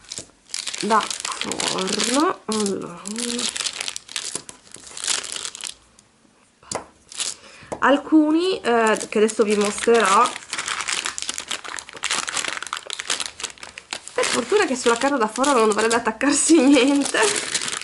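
Paper crinkles and rustles softly under hands.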